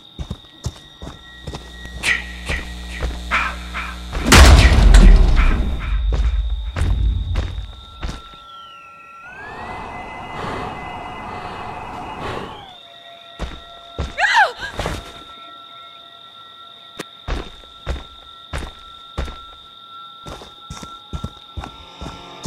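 Heavy footsteps crunch on dirt and leaves.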